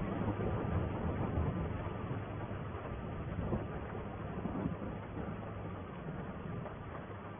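A tractor engine rumbles steadily while driving.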